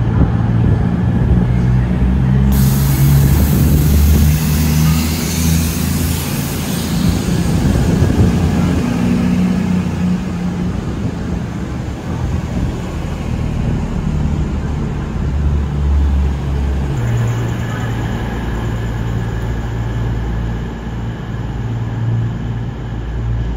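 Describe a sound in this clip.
Train wheels roll and clatter along the rails.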